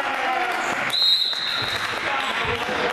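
A referee blows a sharp whistle in a large echoing hall.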